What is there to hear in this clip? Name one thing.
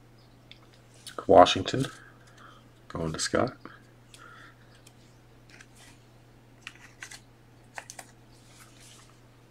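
Trading cards slide and tap against each other.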